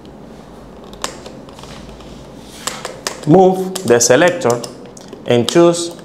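A multimeter's rotary dial clicks as it is turned.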